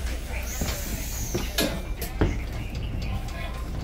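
A bus door hisses open.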